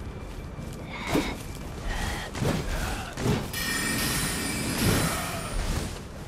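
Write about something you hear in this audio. A blade swishes through the air in quick swings.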